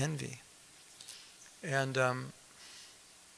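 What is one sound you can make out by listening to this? A man speaks slowly and calmly into a microphone, with pauses.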